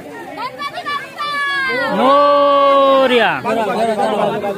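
A crowd of men and women chant loudly together.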